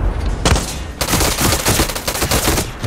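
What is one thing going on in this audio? A gun fires in rapid, loud bursts that echo.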